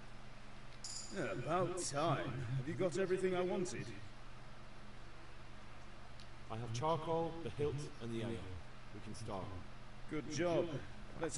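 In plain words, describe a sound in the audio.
A man speaks loudly and briskly, close by.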